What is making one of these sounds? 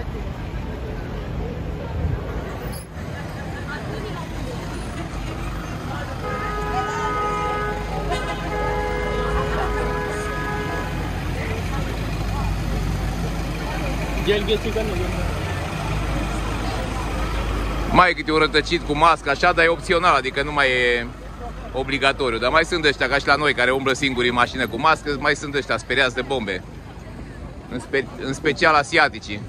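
A crowd of people murmurs in the street.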